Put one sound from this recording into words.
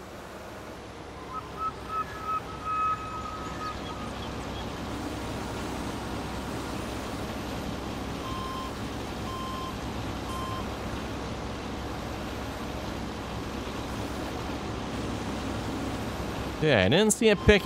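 A large loader's diesel engine rumbles steadily.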